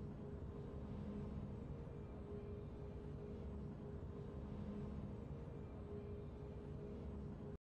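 Low, soft game music hums steadily.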